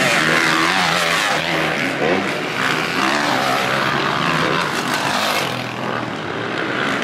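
Motocross bike engines rev and whine loudly close by, rising and falling in pitch.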